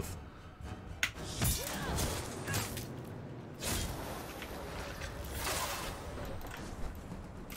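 Blades swing and strike in a close fight.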